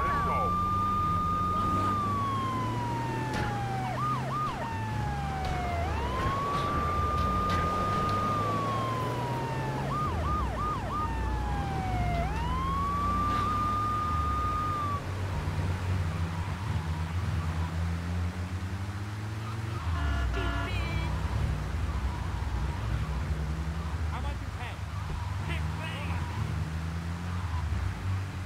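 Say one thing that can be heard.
A van engine hums and revs as it drives, shifting up and down in pitch.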